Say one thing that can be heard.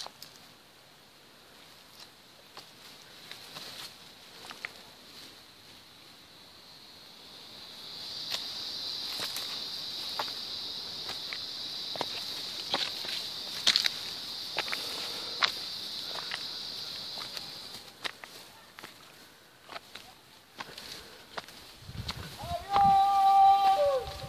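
Footsteps crunch on loose stones and dry leaves.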